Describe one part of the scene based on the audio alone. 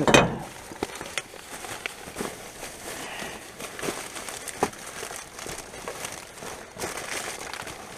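Plastic bags and wrappers rustle and crinkle close by.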